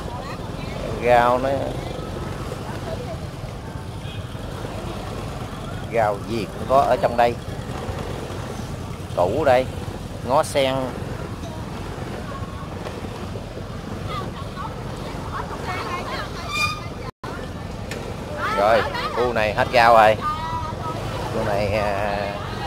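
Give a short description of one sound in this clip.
Vendors and shoppers chatter in short bursts nearby.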